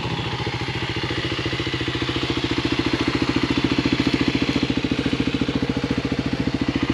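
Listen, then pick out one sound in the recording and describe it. A dirt bike engine idles close by with a steady putter.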